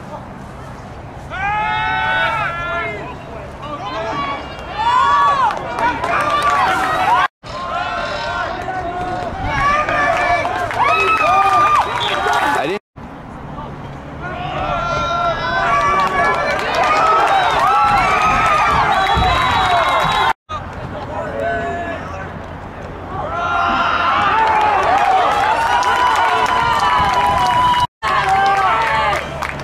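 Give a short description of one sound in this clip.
A crowd of young men and women shouts and cheers loudly outdoors.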